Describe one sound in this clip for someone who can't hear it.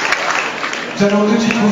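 A boys' choir begins singing together in a large hall.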